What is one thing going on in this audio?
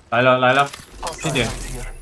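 Gunfire from a game rattles in quick bursts.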